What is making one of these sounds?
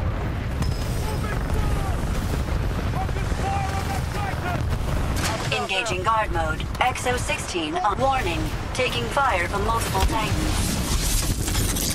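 Explosions thud and rumble.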